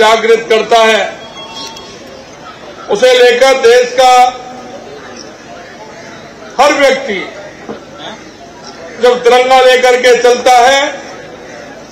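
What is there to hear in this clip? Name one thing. A man speaks forcefully into a microphone over loudspeakers, in short bursts with pauses.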